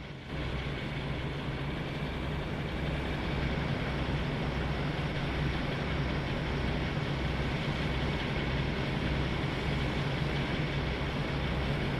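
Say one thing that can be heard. A diesel locomotive engine idles with a steady, throbbing rumble.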